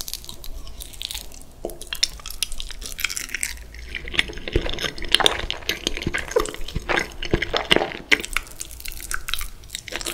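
A young man bites into soft food.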